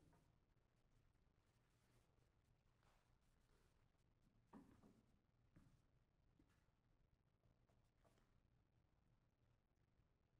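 A grand piano plays softly in a large echoing hall.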